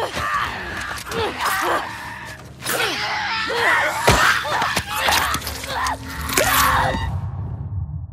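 A monstrous creature shrieks and gurgles up close.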